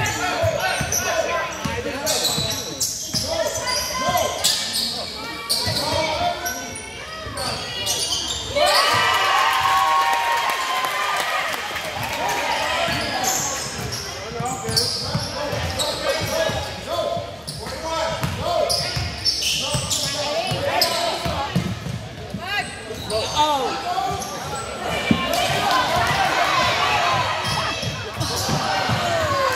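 A crowd of spectators talks and cheers in a large echoing gym.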